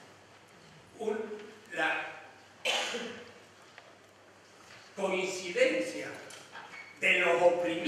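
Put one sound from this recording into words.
An elderly man speaks slowly and thoughtfully into a microphone, with pauses.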